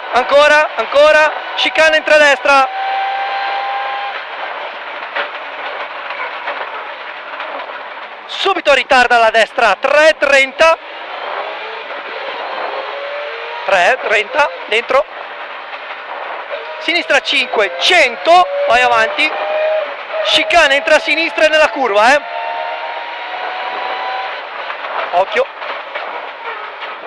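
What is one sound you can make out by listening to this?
A rally car engine roars loudly, revving up and down as it accelerates.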